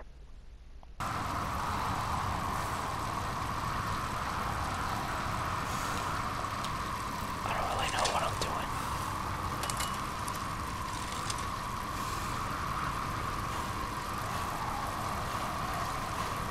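Bicycle tyres hum steadily along a road.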